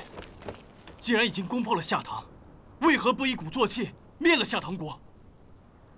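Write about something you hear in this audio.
A young man speaks forcefully and urgently, close by.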